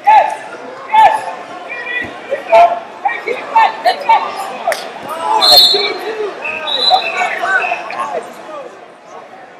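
Men and women in a crowd shout loudly and excitedly, echoing through a large hall.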